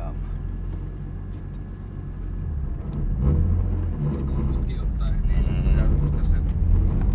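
A car engine rumbles steadily and grows louder as the car speeds up.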